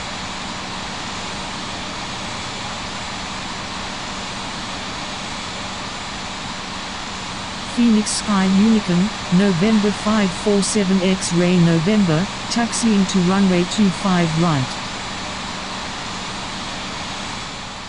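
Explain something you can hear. A jet engine hums steadily as an airliner taxis.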